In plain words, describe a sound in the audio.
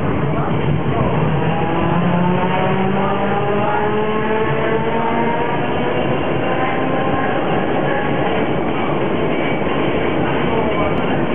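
A tram's electric motor whines, rising in pitch as it speeds up.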